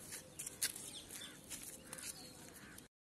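A small child's sandals shuffle and tap on concrete.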